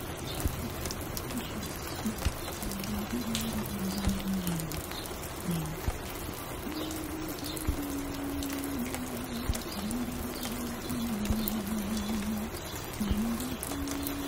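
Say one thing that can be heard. A vinyl record crackles and pops on a turntable.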